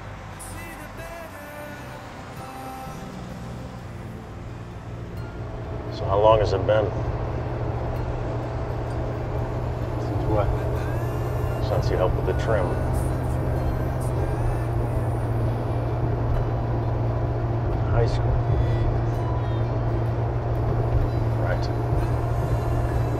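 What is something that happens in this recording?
A vehicle engine rumbles steadily from inside the cab, growing louder.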